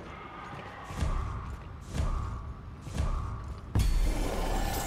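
Deep booming thumps sound once a second during a countdown.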